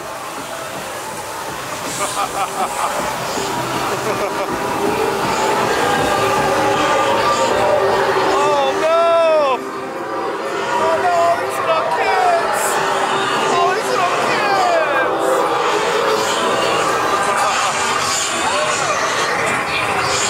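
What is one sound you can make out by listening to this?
A costumed man growls and shouts close by.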